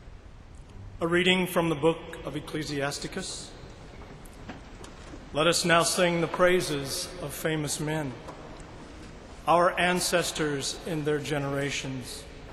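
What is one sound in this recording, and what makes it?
A man speaks slowly and formally through a microphone in a large echoing hall.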